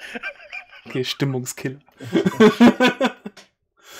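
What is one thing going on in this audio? Men laugh over an online call.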